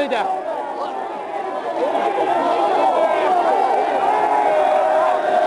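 A large crowd of men and women shouts and chants loudly outdoors.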